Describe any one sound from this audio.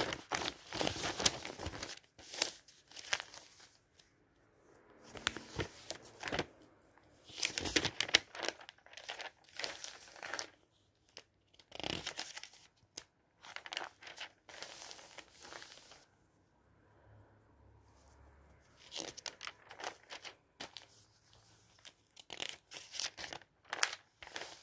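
Glossy paper pages rustle and flap as they are turned.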